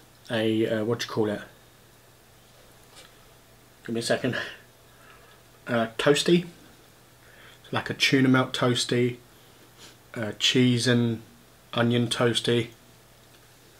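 A middle-aged man talks calmly and close by, in short bursts.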